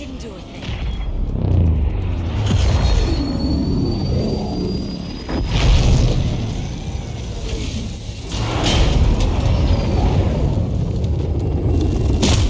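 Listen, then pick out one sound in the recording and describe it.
A dropship's engines roar as it hovers and descends.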